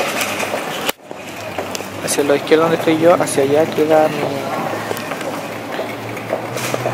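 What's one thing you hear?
Voices and footsteps murmur and echo in a large hall.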